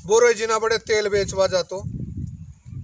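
An elderly man speaks loudly and with animation nearby.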